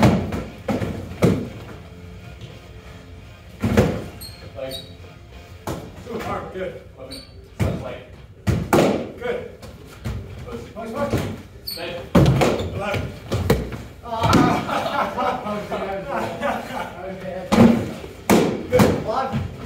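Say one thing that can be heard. Padded foam weapons thump against shields and bodies in a large echoing room.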